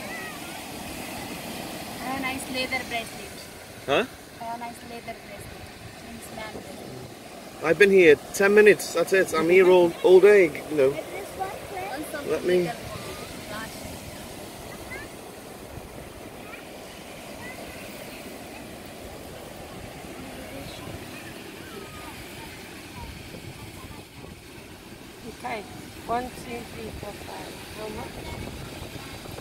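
Waves wash steadily onto a beach nearby.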